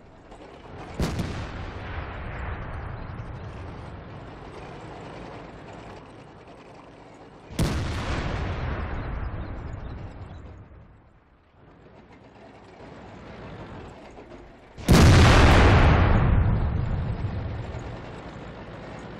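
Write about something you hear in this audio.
A tank cannon fires with loud booms that rumble away.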